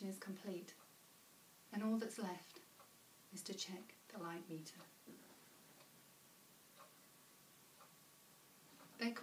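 A young woman reads aloud calmly, close by, with pauses between lines.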